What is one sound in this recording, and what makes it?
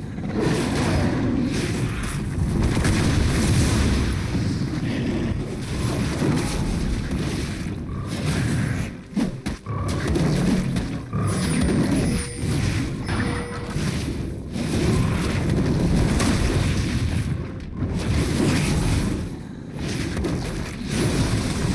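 Game combat effects clash and burst repeatedly.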